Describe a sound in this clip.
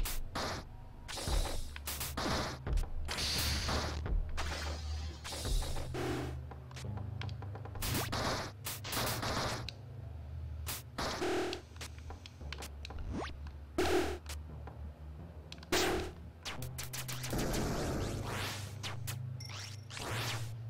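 Game music plays steadily.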